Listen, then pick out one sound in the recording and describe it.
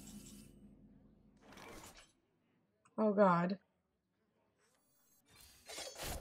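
Video game sound effects whoosh and chime.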